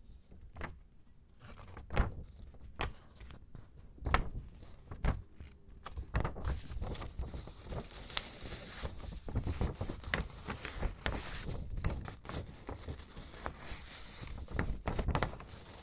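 A sheet of paper crinkles and rustles close up, with sharp crackles.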